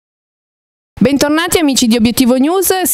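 A young woman speaks calmly into a microphone, heard through loudspeakers.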